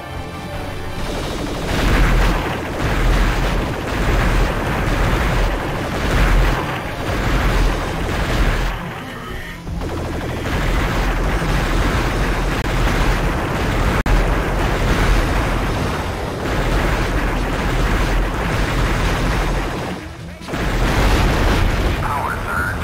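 A vehicle's guns fire rapid laser shots.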